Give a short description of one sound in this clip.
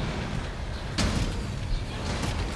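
A fiery blast bursts with a deep rumble.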